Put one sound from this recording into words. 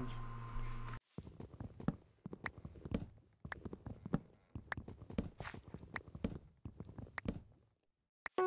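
An axe chops wood with quick, repeated knocks.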